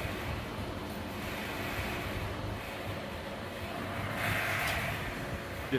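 A motorcycle engine runs loudly indoors and revs up briefly.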